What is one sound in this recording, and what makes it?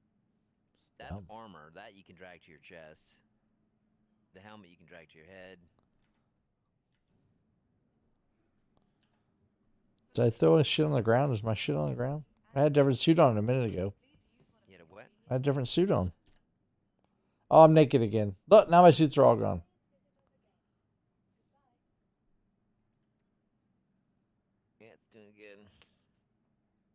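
A man talks casually into a close microphone, in bursts with pauses.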